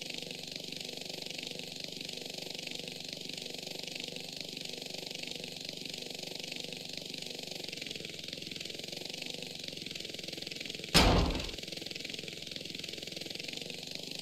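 A helicopter's rotor whirs steadily overhead.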